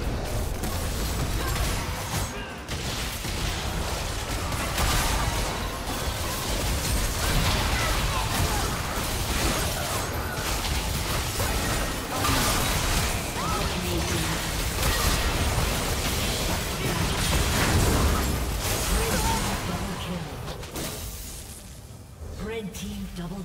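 Spell effects blast, crackle and whoosh in a busy fight.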